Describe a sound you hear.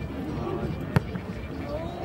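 A soccer ball is kicked with a sharp thud.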